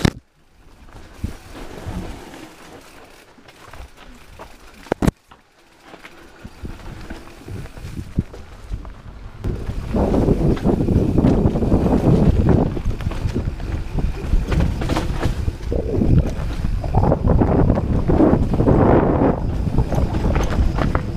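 Wind rushes past a fast-moving rider.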